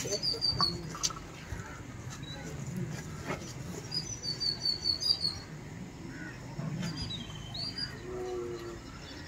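An elderly man chants a prayer aloud.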